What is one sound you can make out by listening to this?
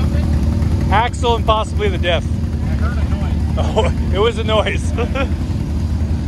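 A man talks loudly outdoors over the engines.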